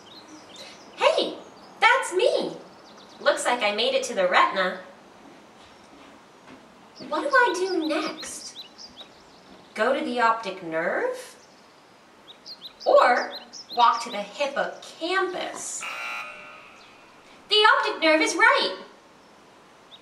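Adults speak close by in playful, changing character voices.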